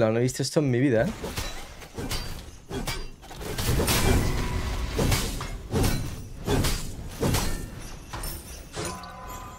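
Weapons clash and blasts go off in a fast fight.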